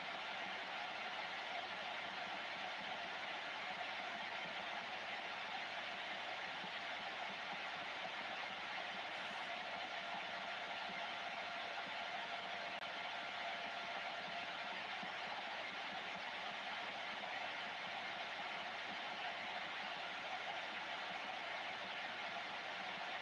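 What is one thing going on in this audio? Radio static hisses steadily from a loudspeaker.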